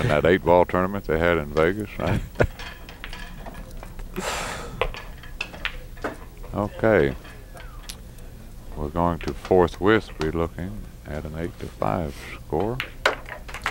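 Pool balls click together on a table.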